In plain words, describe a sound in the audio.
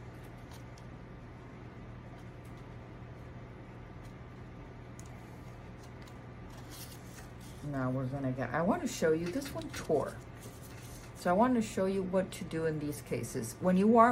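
Paper leaves rustle softly as hands handle them.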